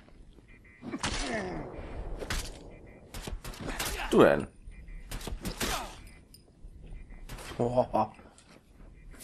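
A man grunts and groans in pain.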